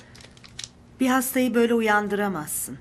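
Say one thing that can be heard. A woman speaks clearly and calmly nearby.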